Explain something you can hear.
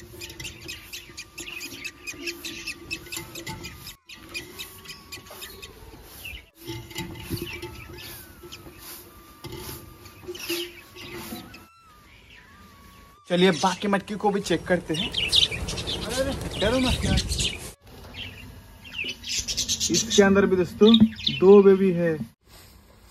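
Baby parrot chicks chirp and squeak.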